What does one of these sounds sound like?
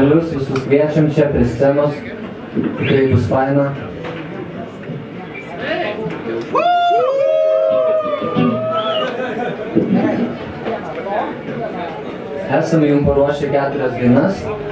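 An electric guitar plays loudly.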